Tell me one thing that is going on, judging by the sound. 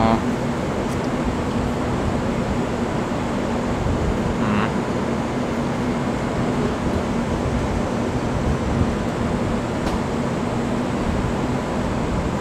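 A stopped train hums steadily up close.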